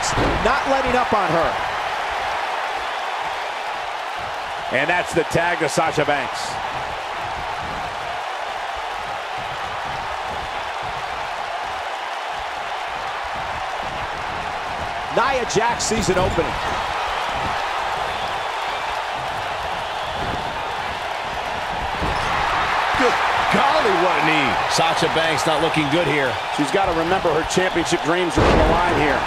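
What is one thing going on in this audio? A large crowd cheers and roars steadily in a big echoing arena, swelling louder near the end.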